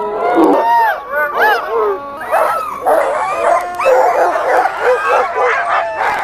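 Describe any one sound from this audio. Many sled dogs yelp and howl excitedly nearby.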